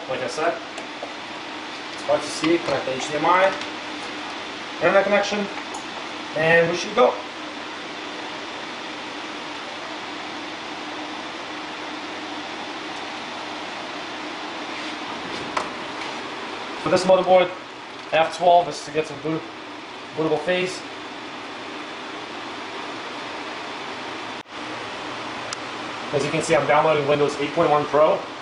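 A computer fan hums steadily.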